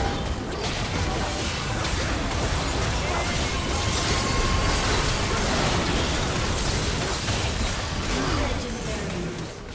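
Game spells burst, crackle and whoosh in a hectic battle.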